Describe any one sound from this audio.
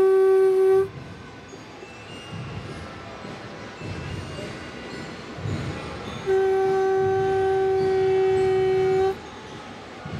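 A conch shell blows a loud, steady, long note close by.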